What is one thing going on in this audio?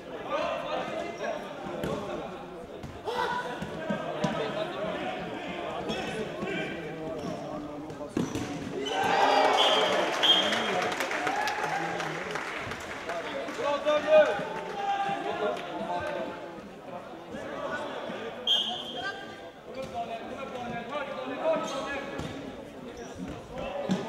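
Players' shoes squeak on a hard indoor floor in a large echoing hall.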